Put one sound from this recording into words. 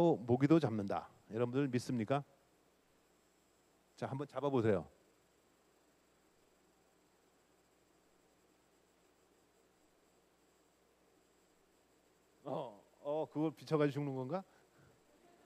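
A man speaks into a microphone to an audience in a large hall, in short bursts.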